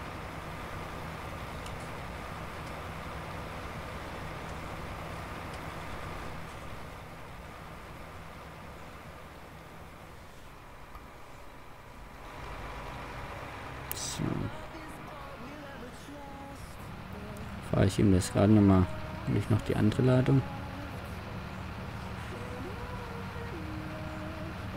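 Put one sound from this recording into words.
A tractor engine idles with a low, steady hum.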